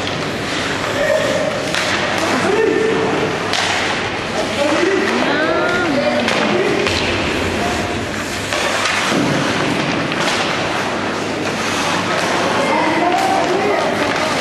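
Young players shout and call out across an echoing rink.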